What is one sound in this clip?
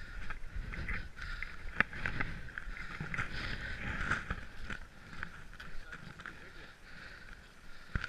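Boots crunch on packed snow.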